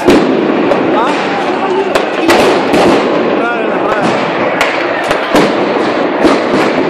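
Explosions and bangs crack out repeatedly.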